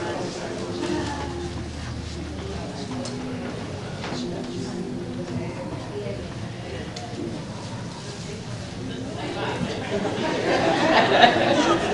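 A congregation murmurs and talks in a large echoing hall.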